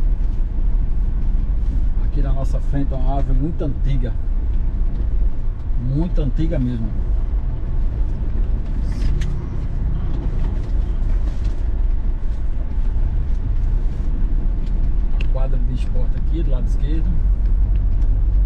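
A car engine hums steadily while driving slowly.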